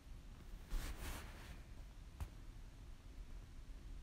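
Raw egg plops softly onto flour.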